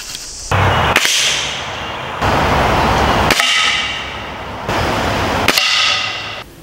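A rifle fires sharp, single shots at a steady pace.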